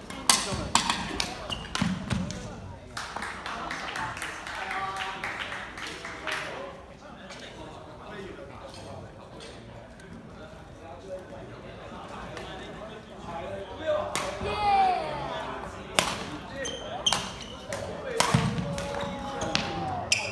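Rackets strike a shuttlecock in a large echoing hall.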